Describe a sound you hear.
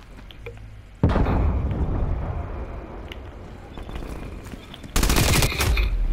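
Gunshots fire loudly.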